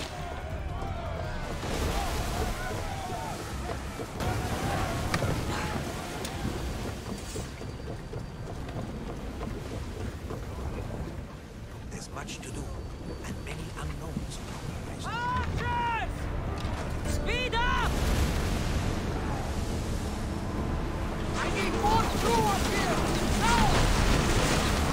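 Waves wash and splash against a wooden ship's hull.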